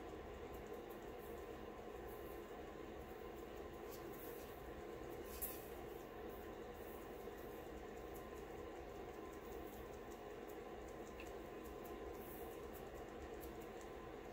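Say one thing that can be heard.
Glitter patters softly onto paper.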